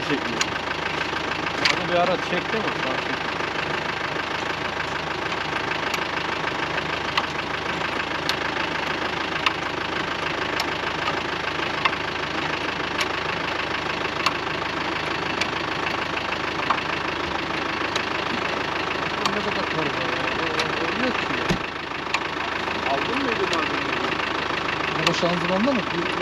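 A hand jack ratchets with regular metallic clicks.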